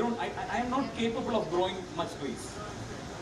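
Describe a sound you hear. A man speaks into a microphone in an echoing hall.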